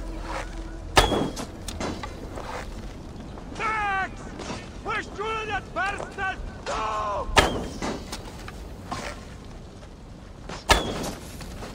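A bowstring snaps as an arrow is shot.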